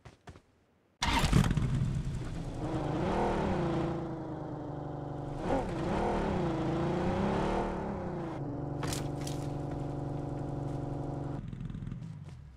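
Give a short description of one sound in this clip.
A car engine starts and hums, rising and falling in pitch.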